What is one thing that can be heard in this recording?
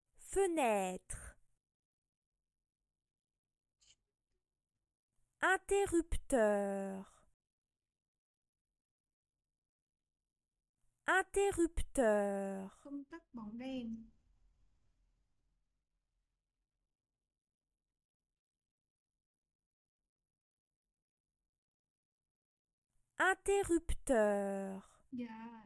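A young woman speaks short words slowly and clearly, close to a microphone, with long pauses between them.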